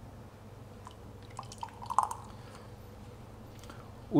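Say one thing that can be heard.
A spoon clinks against a ceramic cup.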